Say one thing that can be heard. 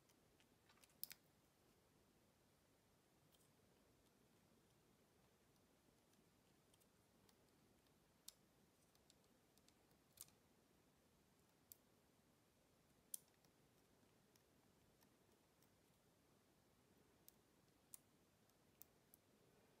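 Small plastic toy bricks click and snap together.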